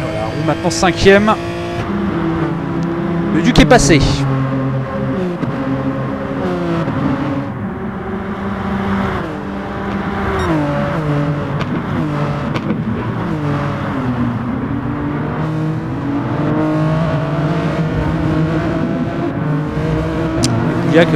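Race car engines roar and rise and fall in pitch as gears change.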